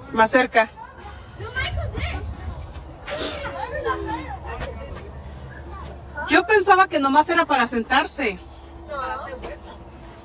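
Young girls shout and squeal playfully close by.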